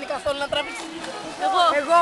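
Water splashes as a swimmer kicks in a pool.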